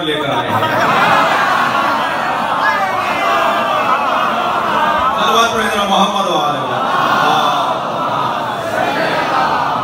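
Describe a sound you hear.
A man speaks loudly and with animation into a microphone, heard through loudspeakers in an echoing hall.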